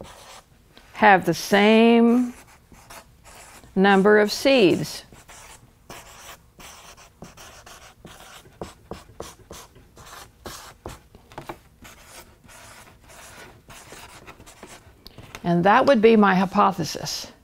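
An elderly woman speaks slowly and clearly into a microphone, reading out words.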